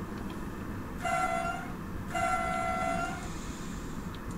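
A train horn sounds two long blasts.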